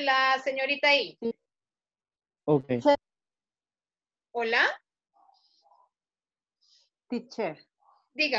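A woman speaks over an online call in short phrases.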